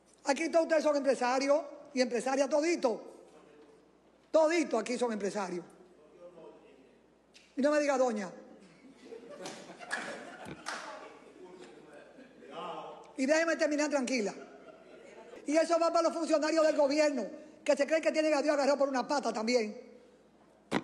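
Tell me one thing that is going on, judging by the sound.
A middle-aged woman speaks forcefully into a microphone in a large echoing hall.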